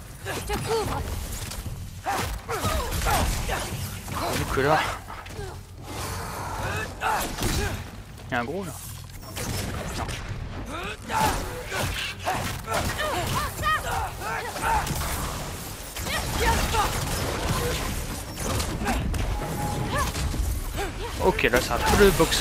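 Heavy blows land with sharp thuds.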